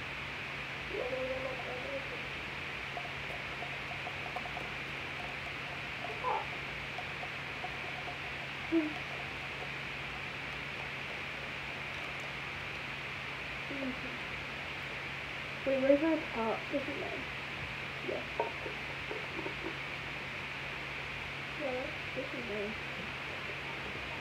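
A young girl talks casually close by, in short bursts.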